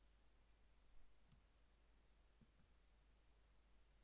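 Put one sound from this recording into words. A phone is set down on a wooden desk with a soft knock.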